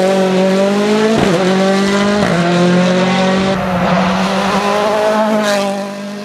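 A rally car engine roars loudly, dropping in pitch with quick gear shifts.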